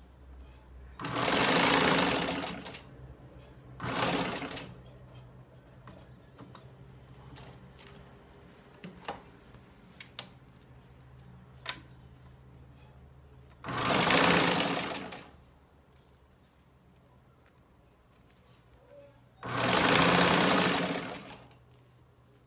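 A sewing machine whirs in loud bursts of stitching.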